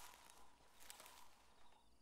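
A plant rustles as it is picked.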